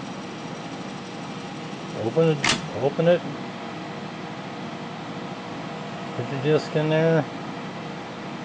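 A disk drive hums steadily.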